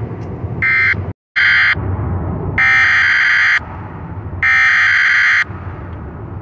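Short bursts of harsh, screechy data noise play in quick succession.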